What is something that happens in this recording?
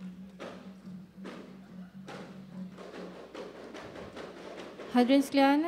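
Frame drums are beaten in a steady rhythm.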